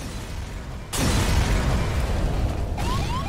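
Deep rumbling explosions boom one after another.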